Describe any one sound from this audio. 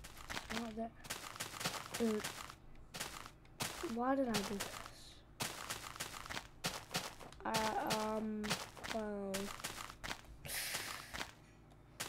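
Footsteps crunch steadily on grass.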